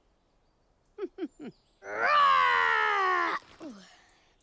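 A young cartoon dragon speaks excitedly.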